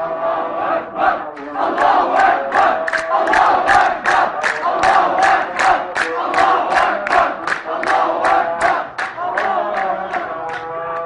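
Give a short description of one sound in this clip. A crowd claps in a fast steady rhythm.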